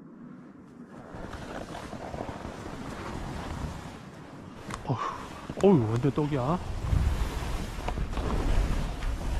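Skis hiss and scrape over packed snow.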